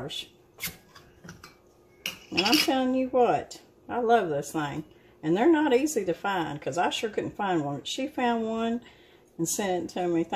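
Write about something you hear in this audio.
A metal spoon clinks and scrapes against a glass jar.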